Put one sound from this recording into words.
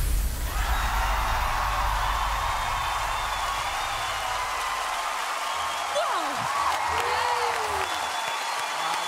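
Pop music plays loudly over loudspeakers.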